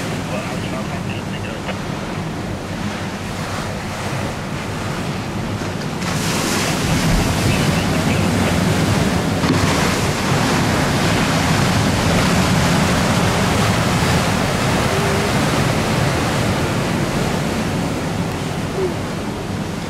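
Wind gusts strongly outdoors.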